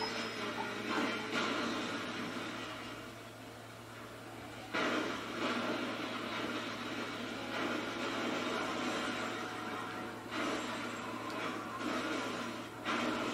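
Metal crashes and explosions boom from a game's loudspeakers.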